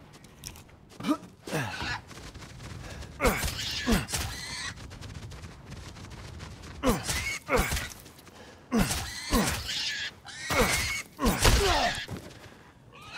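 A pig squeals loudly and repeatedly.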